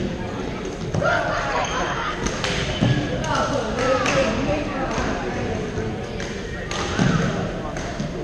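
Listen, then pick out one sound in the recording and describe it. Young men and women call out and chatter in a large echoing hall.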